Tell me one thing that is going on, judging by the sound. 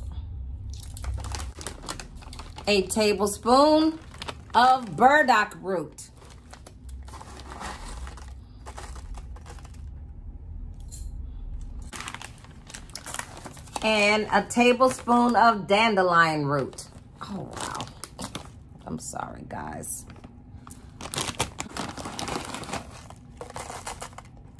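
A foil bag crinkles and rustles in hands.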